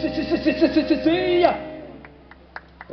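A live band plays loudly outdoors, ending on a held final chord.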